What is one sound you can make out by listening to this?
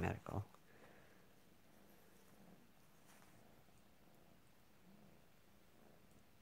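A kitten rolls and paws at a fabric ribbon on a bedspread, making it rustle softly.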